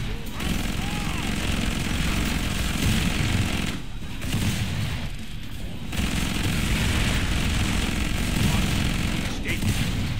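Monsters screech and growl.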